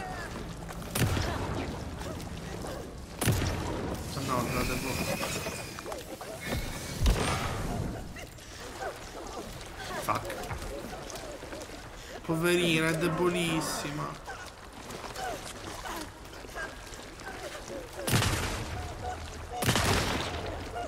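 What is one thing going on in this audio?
Gunshots crack and echo.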